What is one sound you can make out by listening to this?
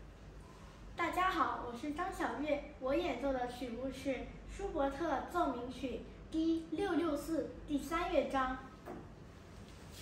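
A young girl speaks clearly and with animation, close by.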